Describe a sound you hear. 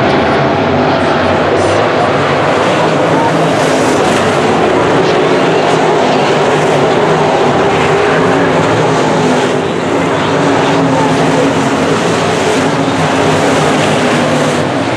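Race car engines roar loudly.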